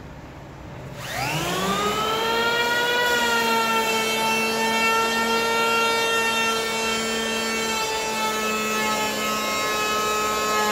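An electric planer spins up and whines steadily while shaving wood.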